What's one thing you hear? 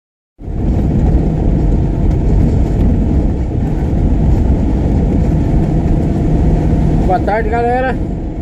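A vehicle rumbles steadily along a dirt road.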